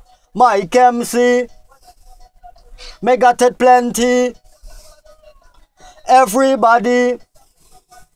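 A man sings short phrases close to a microphone.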